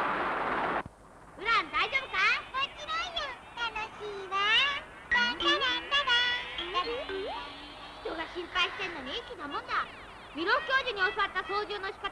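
A young boy talks with animation.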